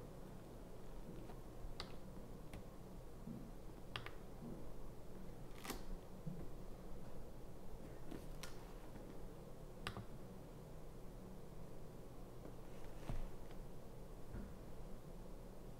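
A leather handbag rustles and creaks as it is handled.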